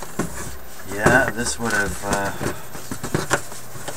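A cardboard box scrapes and rustles as it is moved.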